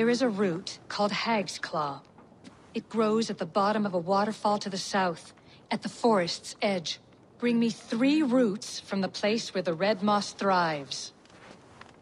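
A woman speaks slowly in a low, deep voice.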